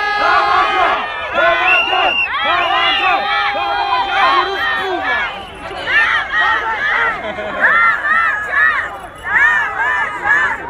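Men talk and call out nearby among a crowd.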